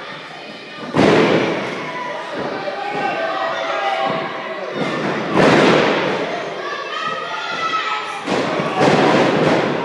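Wrestlers slam heavily onto a ring mat.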